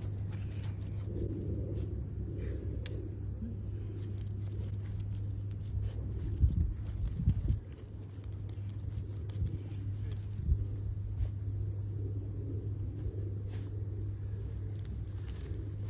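A puppy digs quickly in dry sand, paws scratching.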